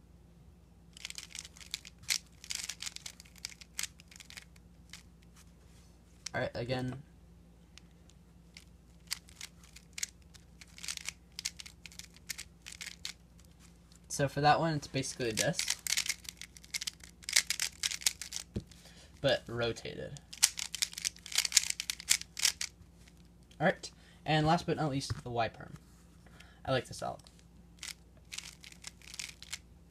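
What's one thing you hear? The layers of a plastic puzzle cube are turned fast and click.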